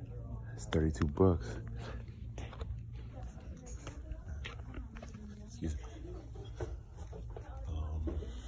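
A man speaks close by, casually.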